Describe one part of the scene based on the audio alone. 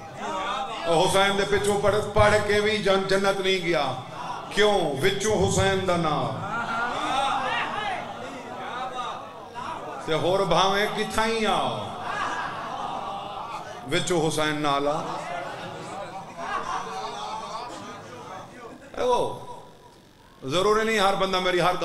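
A young man chants in a drawn-out, melodic voice through a microphone.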